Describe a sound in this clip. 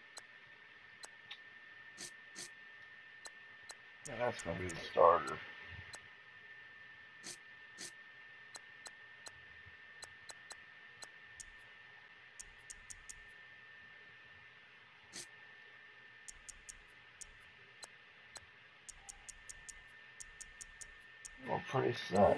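Short soft clicks tick as a menu selection moves.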